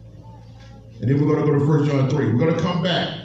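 A man speaks into a microphone over loudspeakers in a large echoing room.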